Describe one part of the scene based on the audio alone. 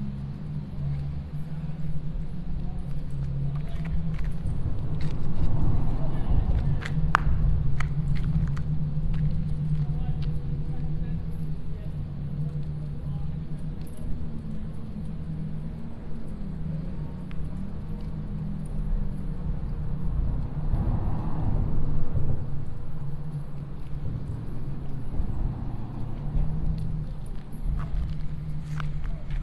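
Water laps gently against a concrete seawall.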